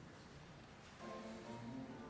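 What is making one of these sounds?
A small choir begins singing in a large echoing hall.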